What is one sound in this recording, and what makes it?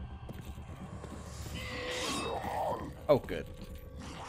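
Metal blades clink and scrape.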